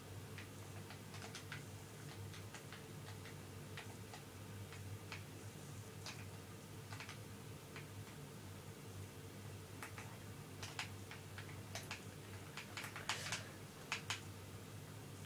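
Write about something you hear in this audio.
Leaves rustle and crunch in short bursts as blocks are broken.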